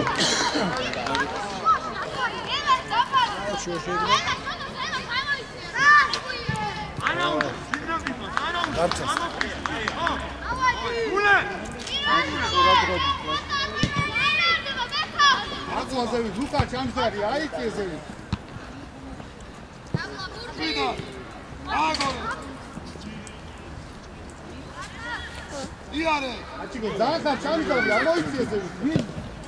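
Children shout and call out across an open outdoor pitch.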